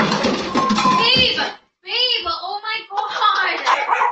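A person crashes to the floor with a thud.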